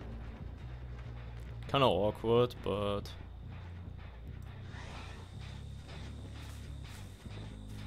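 Heavy footsteps tramp steadily through dry grass.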